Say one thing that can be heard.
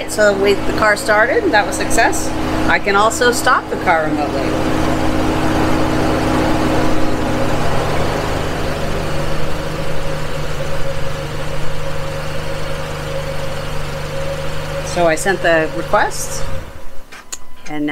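A car engine idles steadily, then shuts off.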